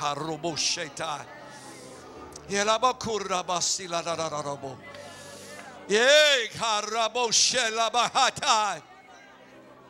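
A middle-aged man speaks with animation into a microphone, heard through a loudspeaker.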